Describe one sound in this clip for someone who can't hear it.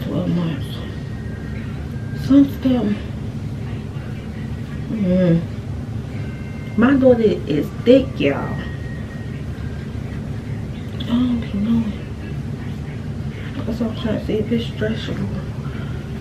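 A young woman talks calmly and close by, in short phrases with pauses.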